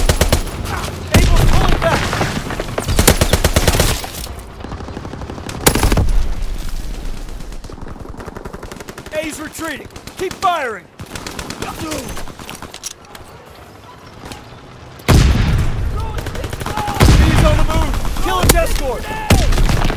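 Rapid gunfire bursts out loudly in quick shots.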